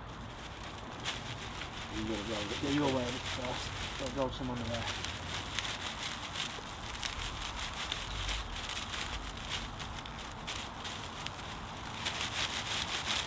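Dry straw rustles and crackles as it is handled.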